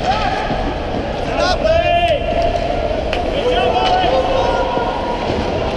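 Skate blades scrape and hiss across ice.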